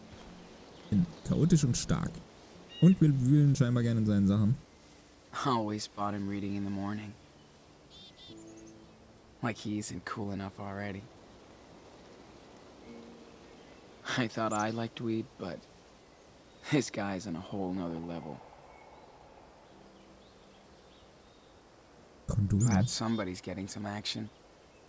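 A young man talks close to a microphone, now and then.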